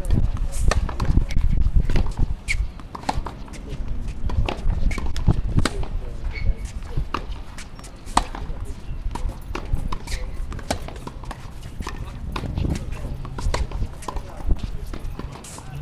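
A tennis racket strikes a ball with sharp pops, again and again.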